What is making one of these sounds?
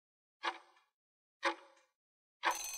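A countdown timer ticks twice.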